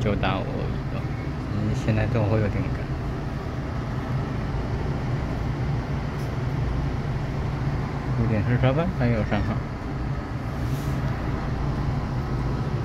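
An electric train rumbles as it rolls out of a station.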